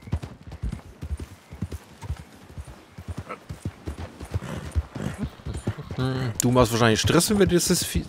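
Hooves crunch on loose gravel.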